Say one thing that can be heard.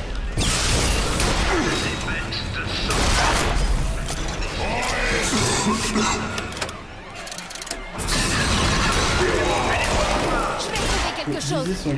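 Gunshots and explosions boom loudly.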